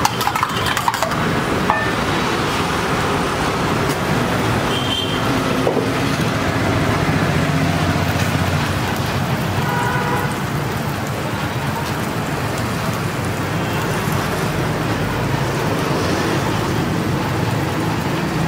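Eggs sizzle on a hot griddle.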